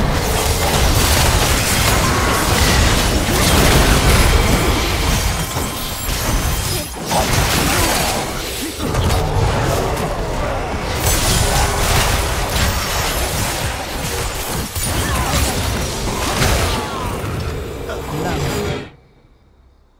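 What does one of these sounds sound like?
Video game spell effects crackle and blast during a fight.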